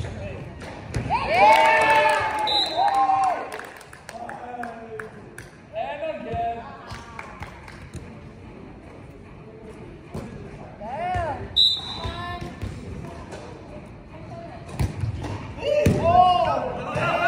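Young men shout and call out across a large echoing gym.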